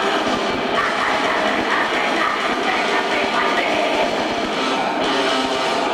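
Drums crash and pound rapidly.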